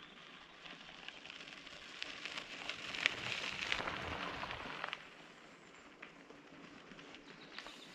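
Bicycle tyres crunch over a gravel track.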